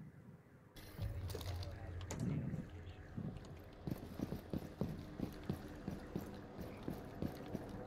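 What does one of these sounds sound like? Footsteps tread on pavement at a steady pace.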